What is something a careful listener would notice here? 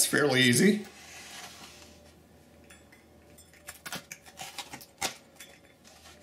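A pizza cutter crunches through a crisp crust.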